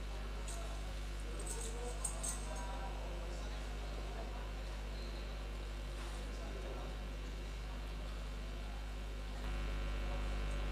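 A woman recites through a microphone in a hall.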